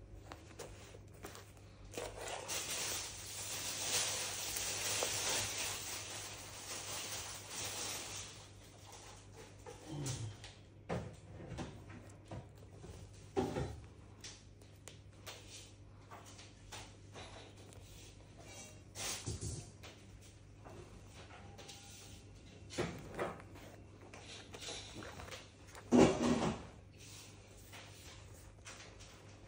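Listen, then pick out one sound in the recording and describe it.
Cloth rustles and brushes as hands smooth and handle it.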